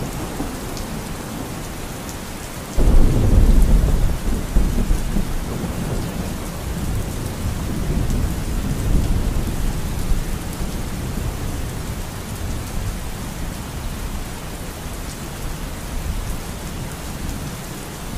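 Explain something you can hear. A river rushes and gurgles over rocks.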